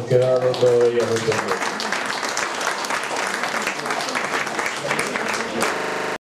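A group of people applaud in a room.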